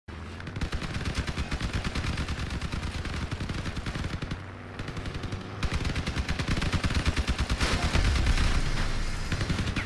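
A vehicle engine roars steadily.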